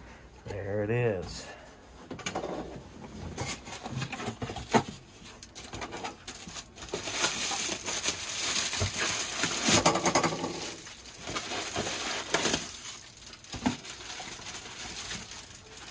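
Cardboard flaps rustle and thump as a box is handled.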